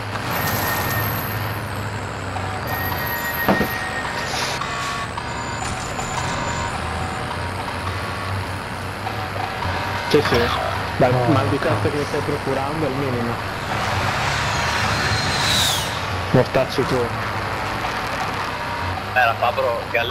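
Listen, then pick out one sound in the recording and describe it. A truck engine rumbles steadily as the truck drives along.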